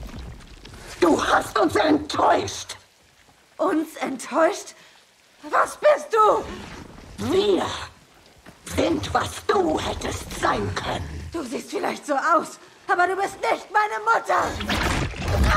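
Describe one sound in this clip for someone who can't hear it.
A young woman speaks tensely, then shouts angrily.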